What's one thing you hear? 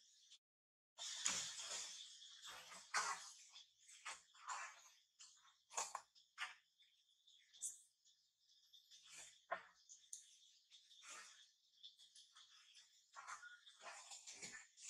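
A baby monkey squeaks and whimpers close by.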